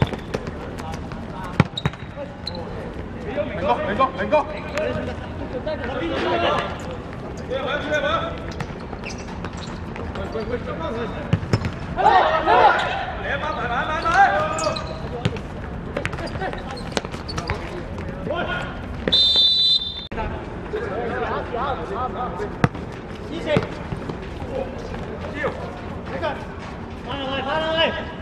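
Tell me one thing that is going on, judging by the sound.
Young men call out to each other during a football match outdoors.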